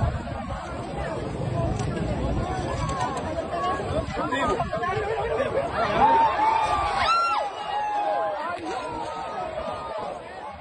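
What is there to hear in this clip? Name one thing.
A crowd of men and women talk and shout excitedly close by, outdoors.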